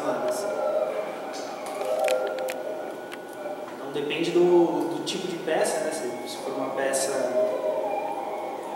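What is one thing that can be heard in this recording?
A young man speaks calmly and close up.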